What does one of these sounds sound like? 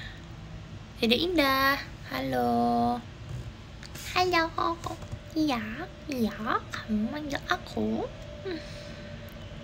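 A young woman speaks softly and playfully close to a microphone.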